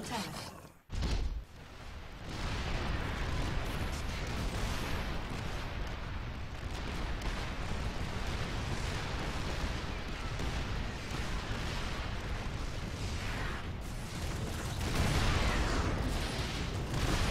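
Game sound effects of units and machinery rumble and clatter.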